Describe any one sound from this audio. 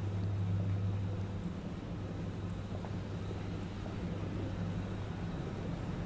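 Footsteps tap on paving stones at a walking pace.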